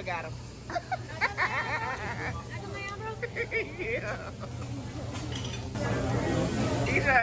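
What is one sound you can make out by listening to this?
Children laugh and shout close by.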